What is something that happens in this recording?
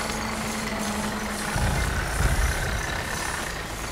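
Footsteps run over gravel.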